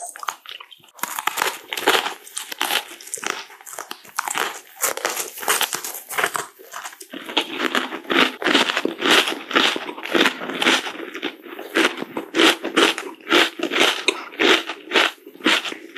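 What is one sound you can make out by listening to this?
A man bites and chews crunchy food close to a microphone.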